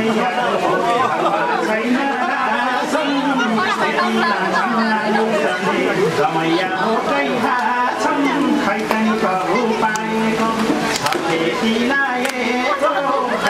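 A crowd of men and women talks and laughs close by.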